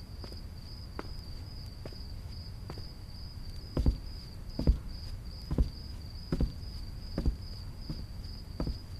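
Slow footsteps thud steadily.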